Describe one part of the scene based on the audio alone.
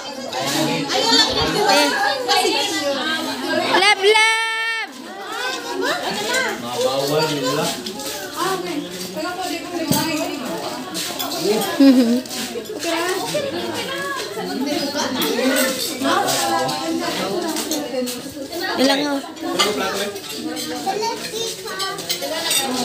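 A crowd of men, women and children chatter and laugh nearby.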